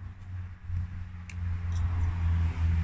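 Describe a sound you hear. A key clicks in a car's ignition.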